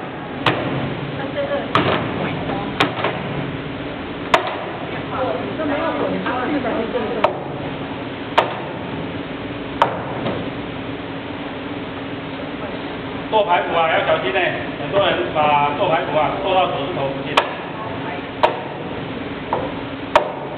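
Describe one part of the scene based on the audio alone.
A cleaver chops sharply on a cutting board.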